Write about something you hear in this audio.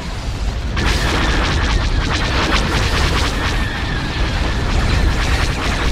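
Large spaceship engines rumble.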